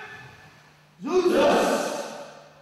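A group of young men call out together in unison, echoing in a hall.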